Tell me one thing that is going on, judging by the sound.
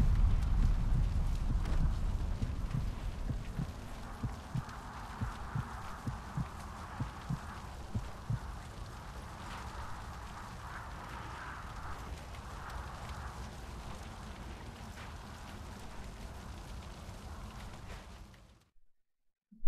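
Fire crackles and roars steadily.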